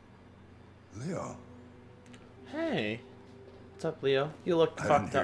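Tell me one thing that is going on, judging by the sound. An elderly man speaks calmly and closely.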